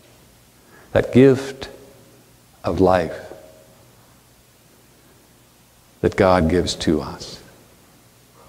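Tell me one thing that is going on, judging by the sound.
A middle-aged man speaks calmly in short phrases, in a room with a slight echo.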